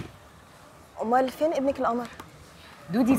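Another young woman answers with animation, close by.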